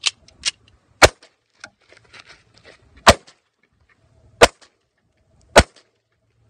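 A handgun fires several sharp shots outdoors.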